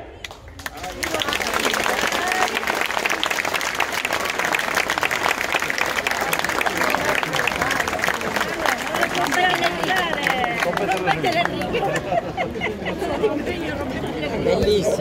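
A large outdoor crowd claps and cheers loudly.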